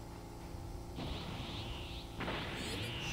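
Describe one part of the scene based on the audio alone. Energy crackles and roars around a fighter who is powering up.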